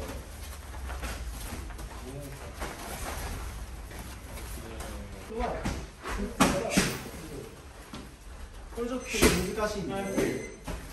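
Bare feet shuffle and thump on a padded floor.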